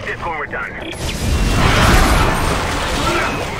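A gun fires a loud energy blast.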